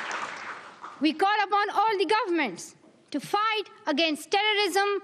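A young girl speaks calmly into a microphone, heard over loudspeakers in a large hall.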